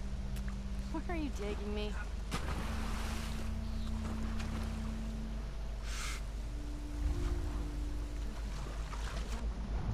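Water splashes as someone wades and swims.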